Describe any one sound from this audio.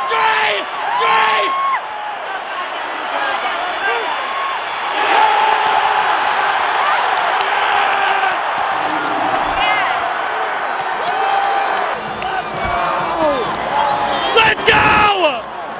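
A huge stadium crowd roars and cheers loudly outdoors.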